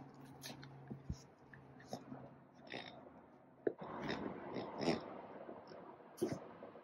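Small dogs tug and rustle a toy on carpet.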